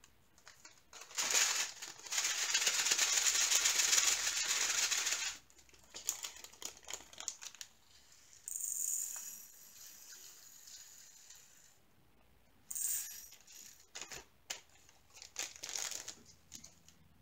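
Small beads rattle and pour inside a plastic container.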